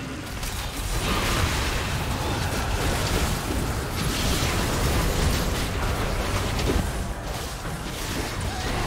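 Game characters' weapons clash and strike.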